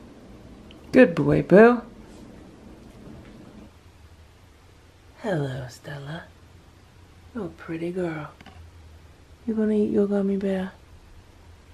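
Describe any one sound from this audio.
A cat meows loudly several times.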